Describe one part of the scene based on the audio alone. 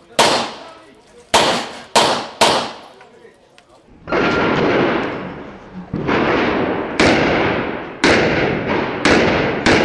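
Pistol shots ring out sharply, echoing off nearby walls.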